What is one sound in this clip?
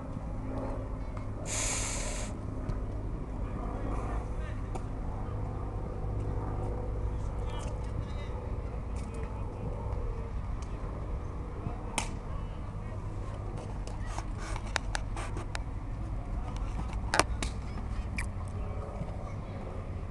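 Children shout and call out across an open field outdoors.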